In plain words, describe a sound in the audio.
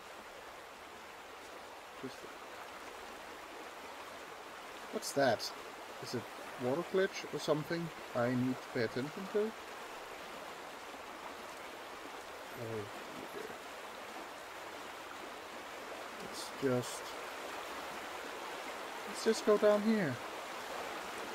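Water rushes and churns over rocks in a river.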